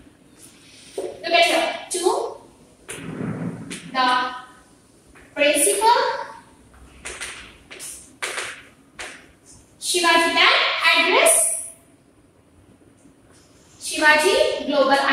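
A young woman speaks calmly and clearly, as if teaching.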